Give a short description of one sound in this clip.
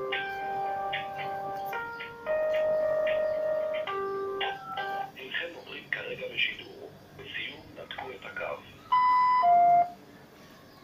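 A phone plays a series of electronic tones and beeps.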